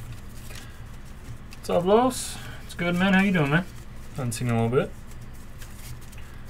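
Trading cards rustle and slide against each other in a pair of hands.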